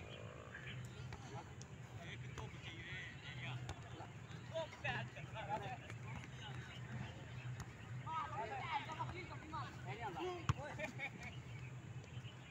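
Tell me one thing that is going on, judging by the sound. A ball thuds as players hit it back and forth.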